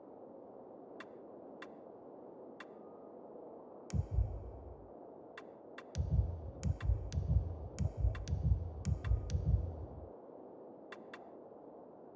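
Menu clicks tick sharply now and then.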